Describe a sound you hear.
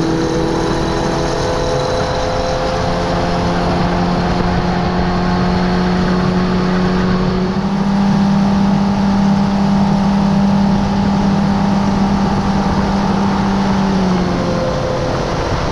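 Wind blows noisily past the boat.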